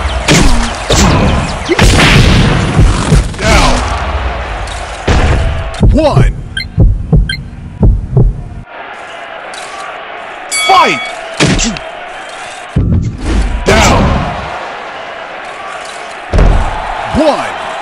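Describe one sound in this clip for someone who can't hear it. Heavy punches thud in quick bursts.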